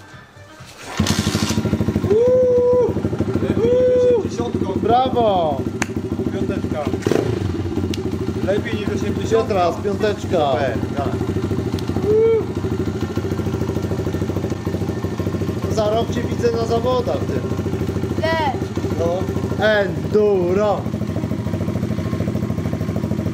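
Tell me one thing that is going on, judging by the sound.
A small motorbike engine starts and idles steadily close by.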